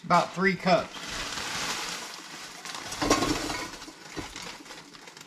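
Liquid pours into a metal pot.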